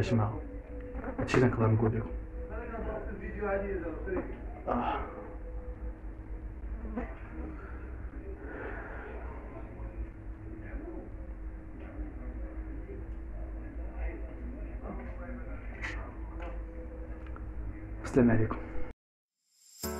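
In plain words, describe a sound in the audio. A young man speaks with emotion into a phone, close and slightly muffled.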